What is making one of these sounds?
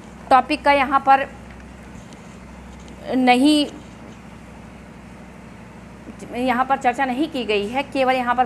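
A woman speaks clearly and calmly close to a microphone, in short phrases with pauses.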